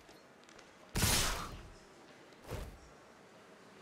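A loud game sound effect whooshes as creatures attack.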